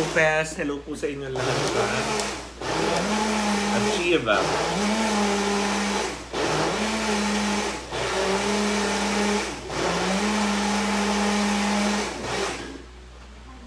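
A blender whirs loudly in short bursts.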